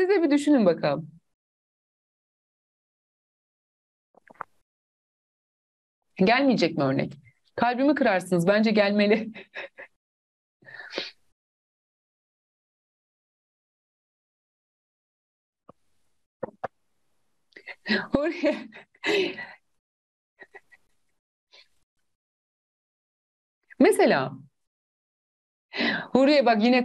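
A young woman speaks with animation into a close microphone, in bursts with pauses.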